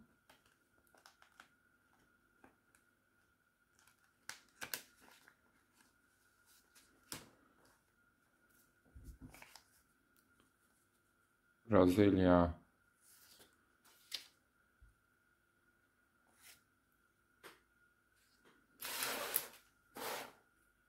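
Paper banknotes rustle and crinkle as they are flipped through by hand.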